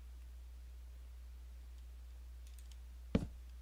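A wooden block is placed with a soft knock.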